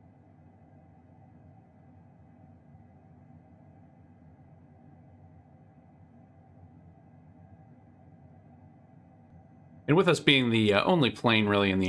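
An aircraft engine drones low and steady.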